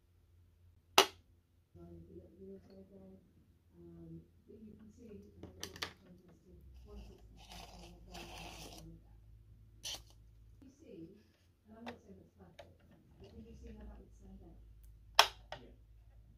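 Small plastic parts of a toy car click sharply.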